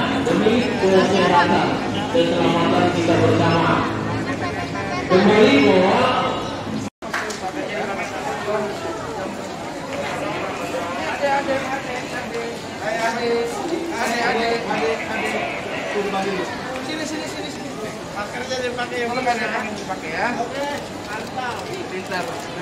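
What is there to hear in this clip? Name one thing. A crowd chatters in a large echoing indoor space.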